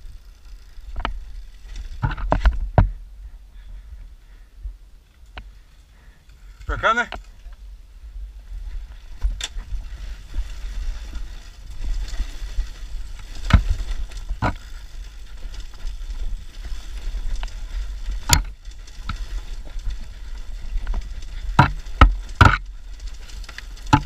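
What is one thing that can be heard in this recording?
A dirt bike's frame clatters and knocks over bumps.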